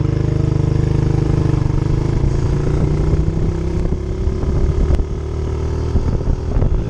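A small motorbike engine putters loudly close by.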